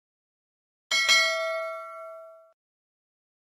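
A small bell chimes once and rings out.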